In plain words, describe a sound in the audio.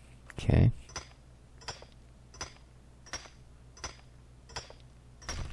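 A pickaxe strikes rock with sharp, regular clicks.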